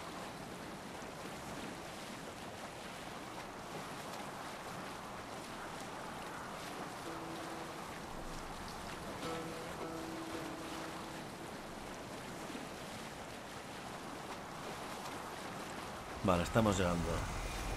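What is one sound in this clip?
Water splashes steadily against a moving boat's hull.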